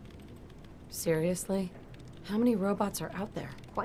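A woman speaks calmly with a questioning tone.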